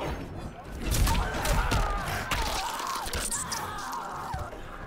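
A wild beast snarls and roars.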